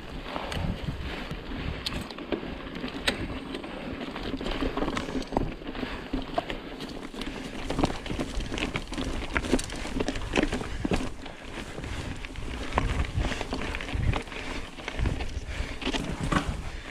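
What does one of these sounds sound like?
Bicycle tyres crunch and rattle over loose stones and rocky ground.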